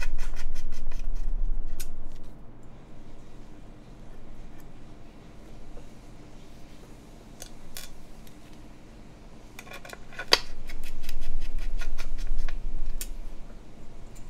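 Plastic parts click and rattle on a desk.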